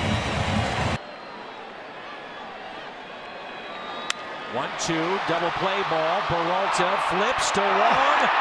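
A crowd murmurs in a large stadium.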